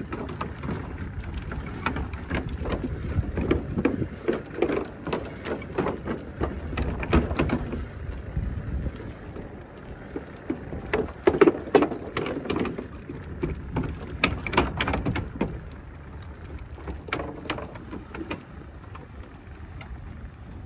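Footsteps thud on a wooden boardwalk.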